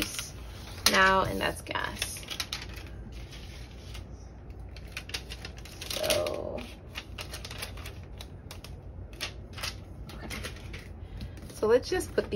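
Plastic sheets rustle and slide across a table.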